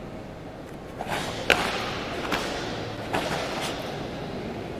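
A karate uniform snaps sharply with quick strikes.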